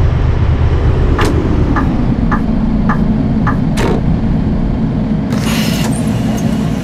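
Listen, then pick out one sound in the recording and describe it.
A bus engine hums lower as the bus slows down.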